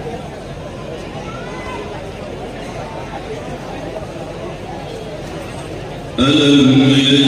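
An elderly man speaks over a loudspeaker.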